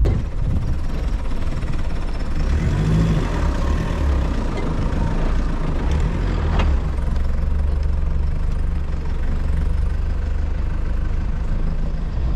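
A vehicle engine rumbles low as it drives slowly over rough ground.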